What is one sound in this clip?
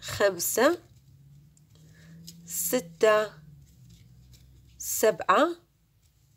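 A crochet hook softly pulls yarn through stitches.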